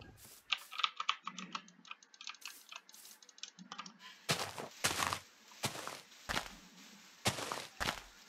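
Footsteps crunch softly on grass.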